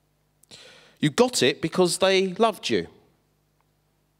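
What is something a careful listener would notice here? A man speaks calmly into a microphone, heard through a loudspeaker in a large echoing hall.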